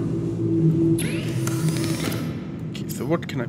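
A machine whirs as its panel slides open.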